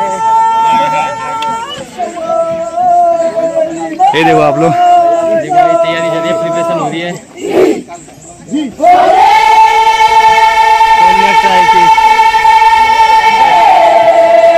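A group of men chant loudly in long, held notes.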